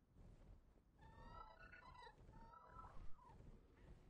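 A large bird screeches several times.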